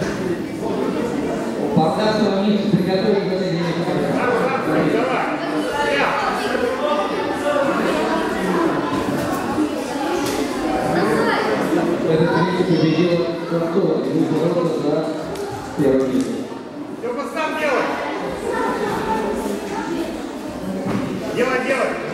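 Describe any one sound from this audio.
Men and women shout loudly in a large echoing hall.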